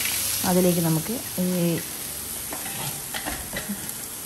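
Chopped greens drop into a hot pan.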